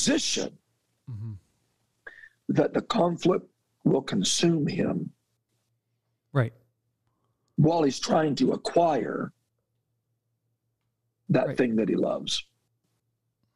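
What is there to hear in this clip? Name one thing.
A man speaks calmly into a microphone, heard over an online call.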